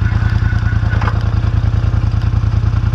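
A metal harrow scrapes and rattles over loose soil.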